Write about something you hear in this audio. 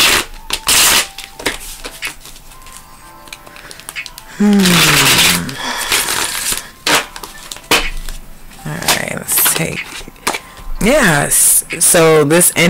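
Playing cards riffle and slap as they are shuffled by hand.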